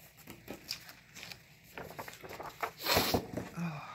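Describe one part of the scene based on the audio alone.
A sheet of paper rustles and slides.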